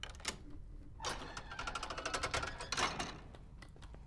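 A heavy stone door grinds open.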